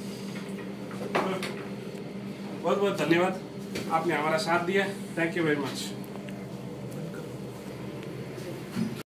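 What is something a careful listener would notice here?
A gas burner flame roars steadily.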